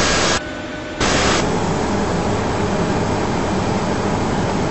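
A steady, muffled engine hum fills a cockpit.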